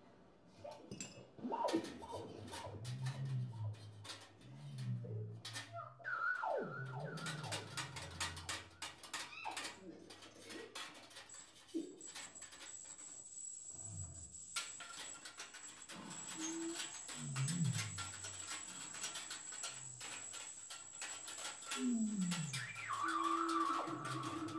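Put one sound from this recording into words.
Odd brass tubes groan, squeal and gurgle in bending pitches.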